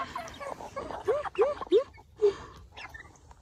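A chicken squawks sharply.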